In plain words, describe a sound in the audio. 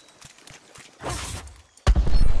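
A magic spell crackles and bursts.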